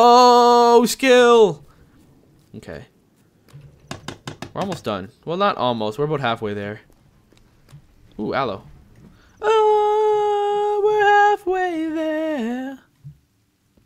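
A young man talks with animation into a headset microphone, close and clear, at times singing out long drawn notes.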